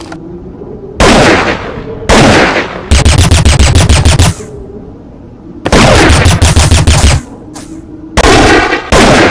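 A rifle fires loud shots and rapid bursts.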